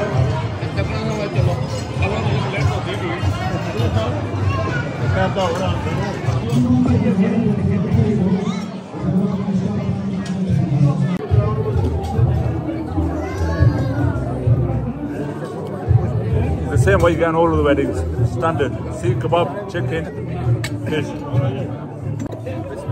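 Many people chatter in the background of a busy room.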